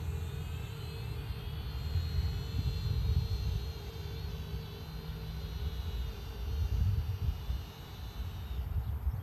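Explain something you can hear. A small drone buzzes high overhead.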